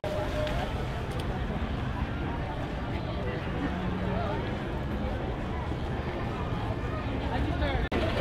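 Many footsteps shuffle on pavement.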